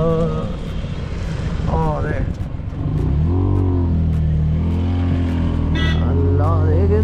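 Tyres hiss over a wet road.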